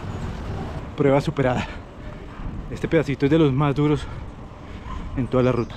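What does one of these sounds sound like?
A man speaks breathlessly and close up.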